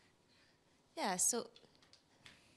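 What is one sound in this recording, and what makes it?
A woman speaks into a microphone in a large hall.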